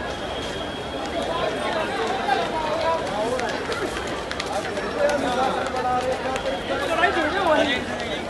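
A crowd of men and women shout and talk excitedly outdoors.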